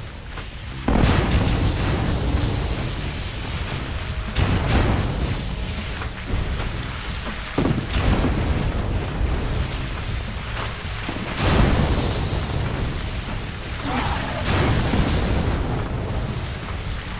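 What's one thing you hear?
Explosions boom one after another.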